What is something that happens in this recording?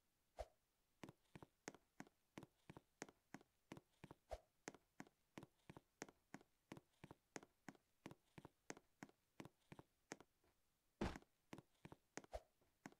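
Quick footsteps patter steadily as a game character runs.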